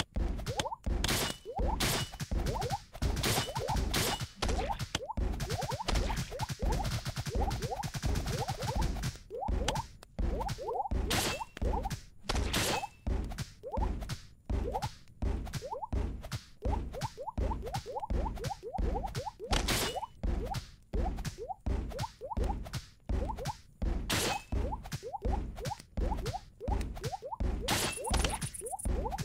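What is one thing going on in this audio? Sword blows strike in quick, repeated hits.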